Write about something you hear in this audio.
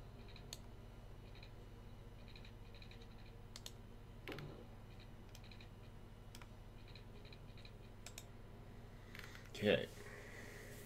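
Short computer game click sounds play now and then.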